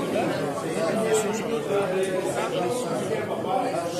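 Game checkers click softly as they are moved on a board.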